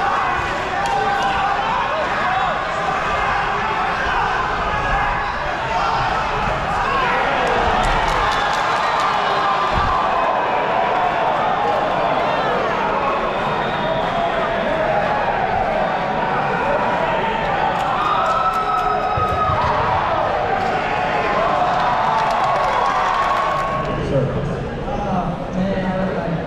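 A crowd of spectators chatters and cheers loudly in a large echoing hall.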